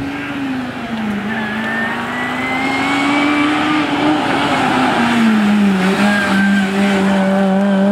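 A rally car engine revs loudly as the car approaches and speeds past.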